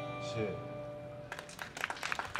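An acoustic guitar rings out a final chord that fades away.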